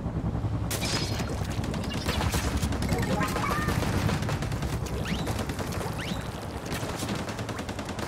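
Upbeat electronic game music plays with a thumping beat.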